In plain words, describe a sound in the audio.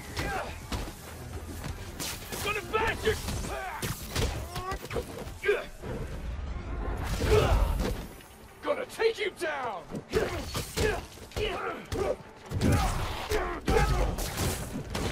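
Punches and kicks thud in a game fight.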